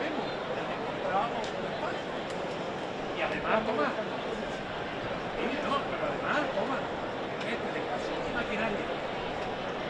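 Voices in a crowd call out now and then nearby.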